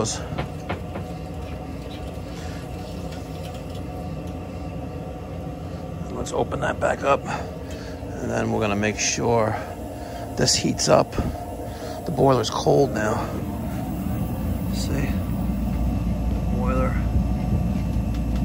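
A water pump hums steadily nearby.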